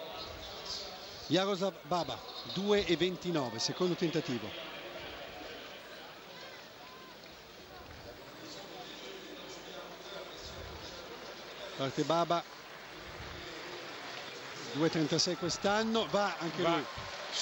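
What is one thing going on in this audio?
A large stadium crowd murmurs in the distance.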